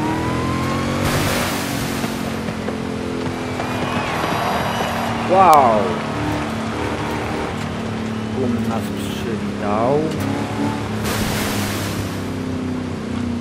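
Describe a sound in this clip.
Water splashes under the tyres.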